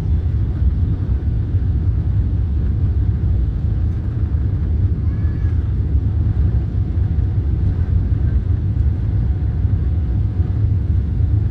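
A jet plane's cabin rumbles low and steady as the plane taxis.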